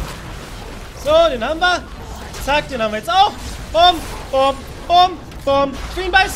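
A young man talks excitedly and loudly into a close microphone.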